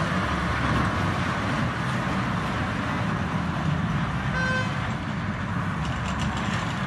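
A small train ride rumbles and clatters along a metal track.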